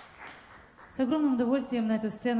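A young woman speaks into a microphone in a hall.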